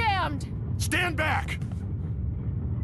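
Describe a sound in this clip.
A man calls out a sharp warning.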